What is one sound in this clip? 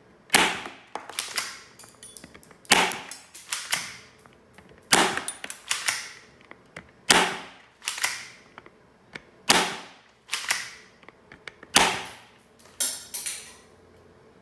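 Sharp shots from an airsoft pistol pop one after another, each followed by a short ringing echo.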